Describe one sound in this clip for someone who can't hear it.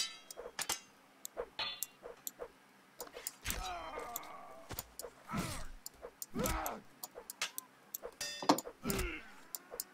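Metal weapons clash and clang in quick, sharp strikes.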